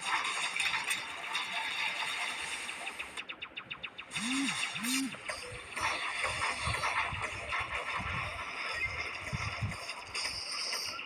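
Rapid electronic laser shots fire without pause.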